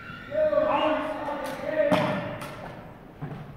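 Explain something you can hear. Rifles clack sharply as they are handled.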